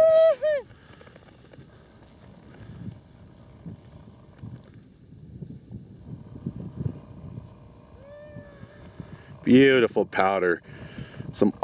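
Skis hiss and scrape across snow.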